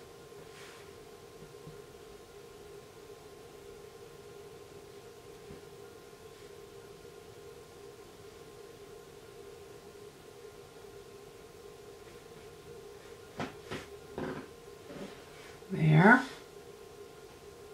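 A small block rubs softly against a hard iced surface.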